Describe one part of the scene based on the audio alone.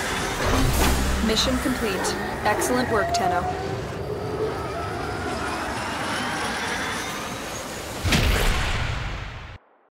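A spaceship engine roars steadily.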